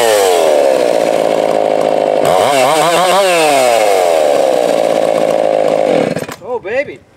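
A chainsaw roars loudly, cutting through a log.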